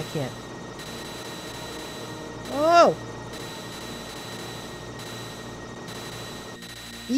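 Chiptune-style game music plays steadily.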